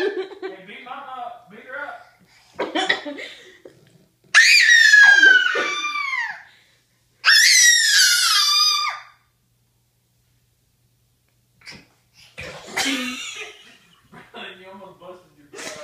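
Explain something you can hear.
A toddler babbles close by.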